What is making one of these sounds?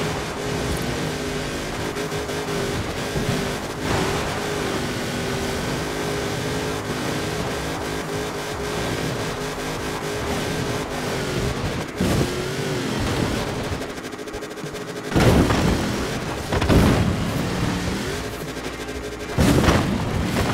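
An engine drones steadily at high speed.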